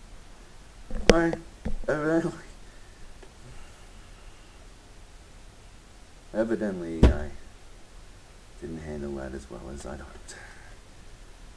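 A man speaks calmly and briefly through a webcam microphone, with long pauses.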